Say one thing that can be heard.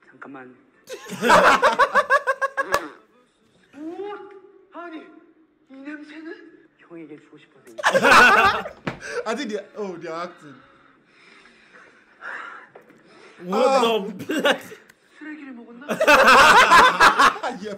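Several young men laugh loudly close by.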